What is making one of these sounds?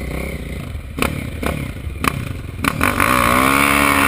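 Another motorcycle engine revs nearby.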